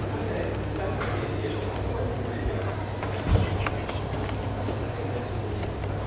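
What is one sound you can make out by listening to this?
A woman speaks calmly and close by into a microphone.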